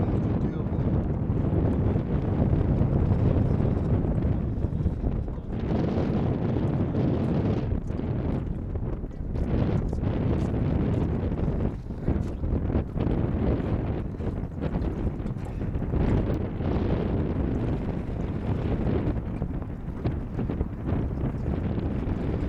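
Small waves lap against the hulls of sailing boats.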